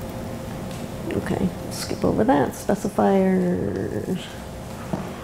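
A woman speaks briefly to a room, heard from a distance.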